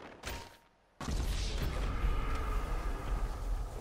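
A body crashes heavily into the ground.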